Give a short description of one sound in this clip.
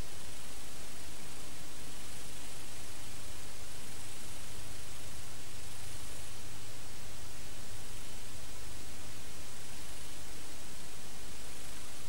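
Loud, steady static hiss rushes without a break.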